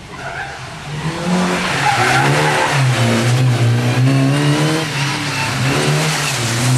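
A rally car engine revs hard, rising and falling as the car takes a bend.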